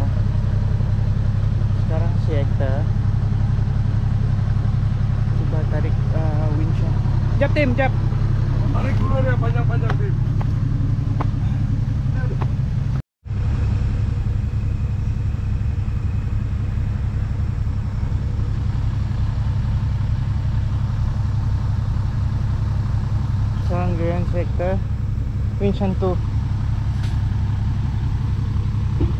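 A vehicle engine rumbles steadily as it strains in mud.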